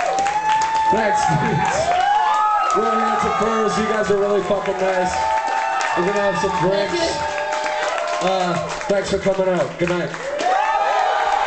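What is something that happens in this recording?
A man sings loudly into a microphone with strained vocals.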